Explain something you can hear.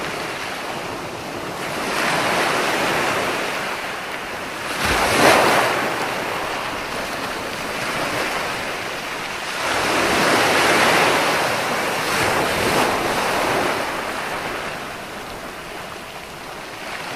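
Foamy water hisses as it spreads over the sand.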